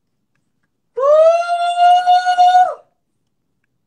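A young man sings out a long, loud note.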